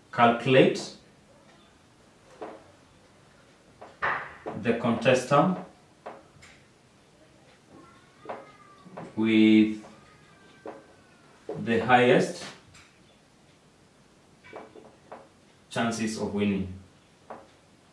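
A young man speaks calmly in short phrases, close by.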